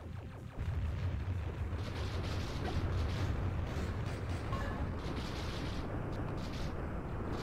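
Video game explosions rumble and boom loudly.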